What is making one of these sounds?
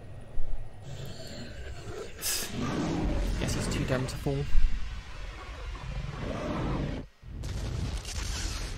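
A young woman speaks quietly into a close microphone.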